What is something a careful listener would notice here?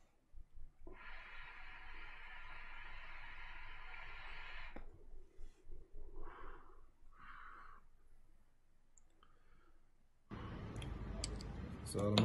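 A fork scrapes and fluffs loose tobacco in a bowl.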